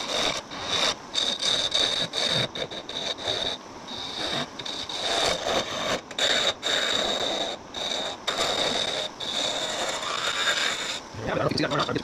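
A chisel scrapes and chatters against wood spinning on a lathe, in short bursts.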